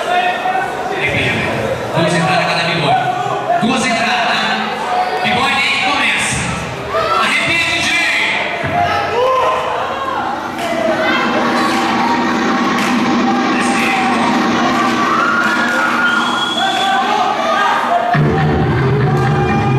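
Music with a heavy beat plays loudly through loudspeakers in an echoing hall.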